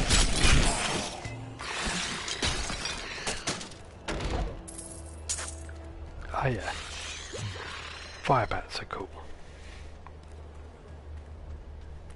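Game combat sounds clash and crackle with spell effects.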